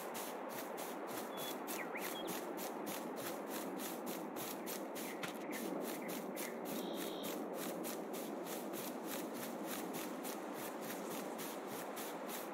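Quick footsteps swish through tall grass.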